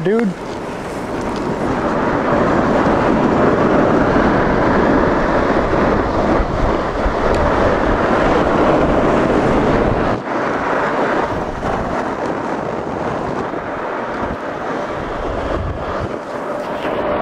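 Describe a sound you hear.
A snow tube slides fast over packed snow with a steady rushing scrape.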